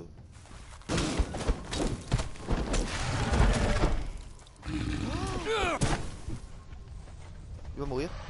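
Heavy blows thud and clash during a fight.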